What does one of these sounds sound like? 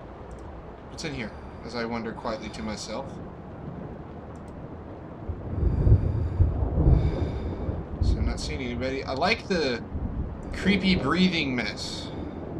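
A man speaks close to a microphone, with animation.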